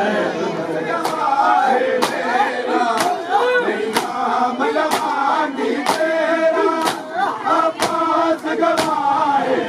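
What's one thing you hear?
Men beat their chests with their hands in a steady rhythm.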